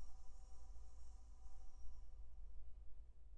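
Woodwinds hold a soft final chord that fades away.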